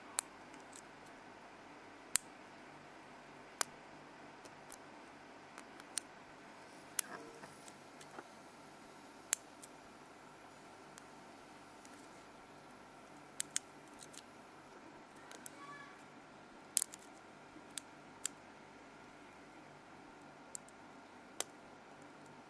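Metal picks click and scrape inside a lock.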